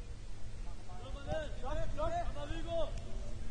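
Young men shout to each other across a field, far off.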